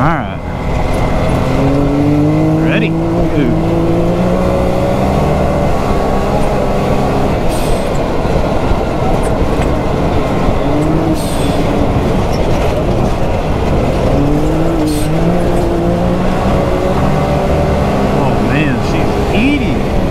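Tyres rumble and crunch over dirt.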